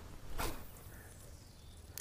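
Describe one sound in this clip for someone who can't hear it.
A fishing reel whirs softly as line is wound in.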